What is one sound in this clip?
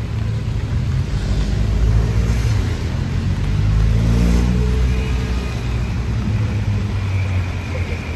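A car drives past, its tyres hissing on the wet road.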